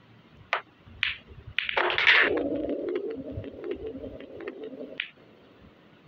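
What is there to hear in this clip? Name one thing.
Billiard balls clack against each other and the cushions.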